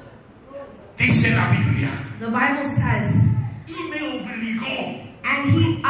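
A man speaks loudly through a microphone with animation.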